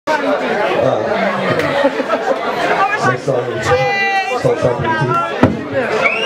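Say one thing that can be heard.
A crowd of men and women chat loudly in a busy, echoing room.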